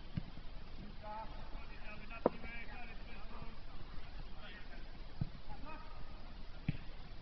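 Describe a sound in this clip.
Men shout to each other across an open field in the distance.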